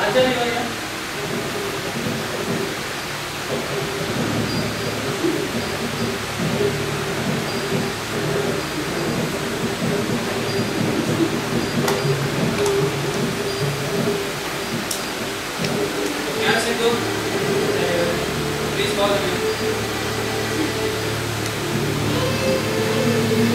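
A man speaks with animation in a hall.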